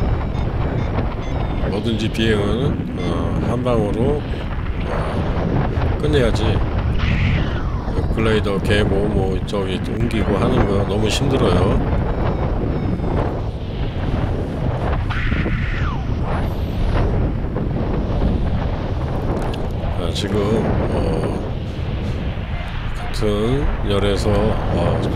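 Wind roars and buffets steadily in the open air.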